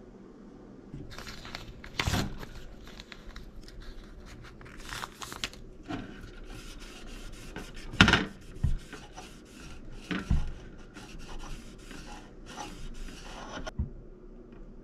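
A paper sticker crinkles and rustles as it is peeled and pressed.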